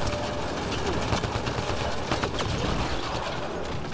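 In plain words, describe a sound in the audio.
An explosion bursts and crackles.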